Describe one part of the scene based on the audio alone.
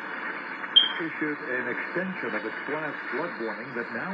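A man speaks steadily through a small radio loudspeaker.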